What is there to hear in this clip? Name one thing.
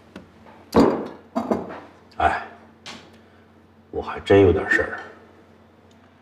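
A man speaks slowly and wearily, close by.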